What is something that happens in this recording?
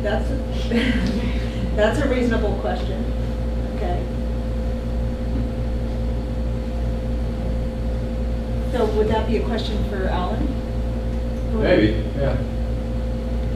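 Adults talk in short bursts, heard from across the room.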